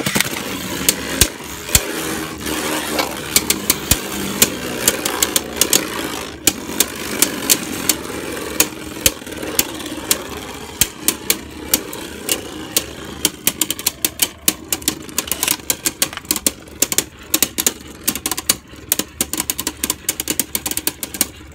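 Spinning tops clash with sharp, rapid clicks, more and more often.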